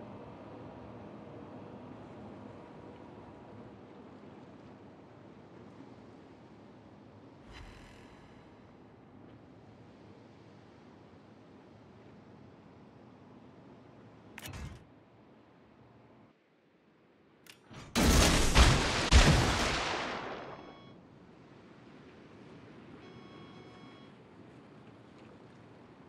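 Water washes steadily against a moving ship's hull.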